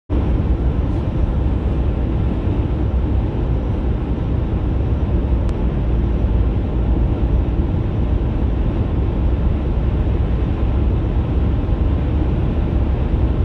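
Tyres roar steadily on a highway, heard from inside a car.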